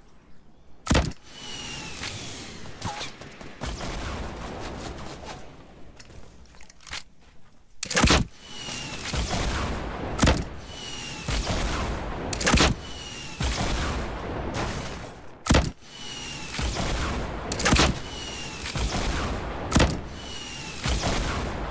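Explosions boom and rumble after each rocket.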